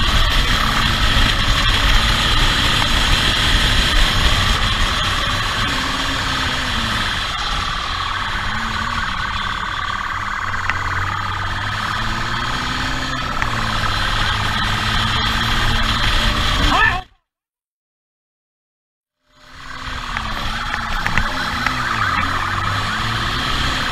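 A motorcycle engine hums and revs as it rides.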